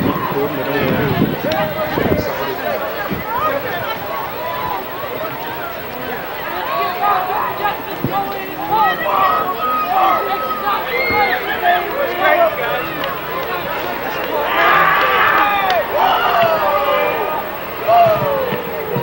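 A crowd of many voices chatters and shouts in outdoor stands.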